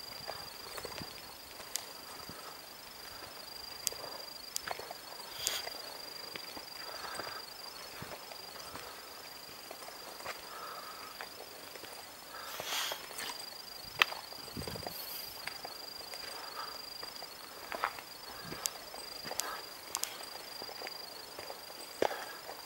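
Footsteps crunch on a dry, leafy dirt path.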